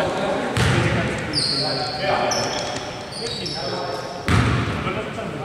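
A basketball thuds on the floor.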